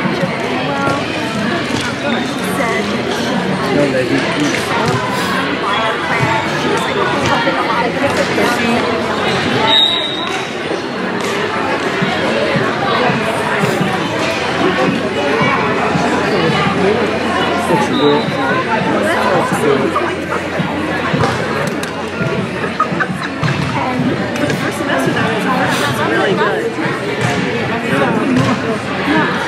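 Hockey sticks clack against a ball and against each other.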